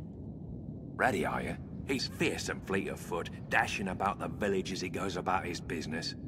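A young man speaks with animation, close by.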